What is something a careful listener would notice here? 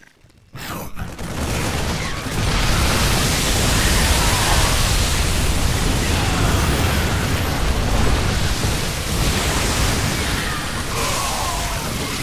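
Gunfire and explosions rattle loudly in a busy battle.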